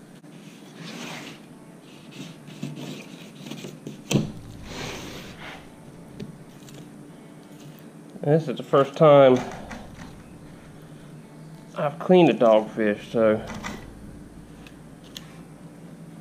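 A knife slices through raw fish.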